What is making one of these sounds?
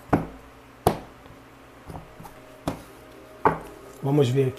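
Cards are laid down on a cloth-covered table with soft taps.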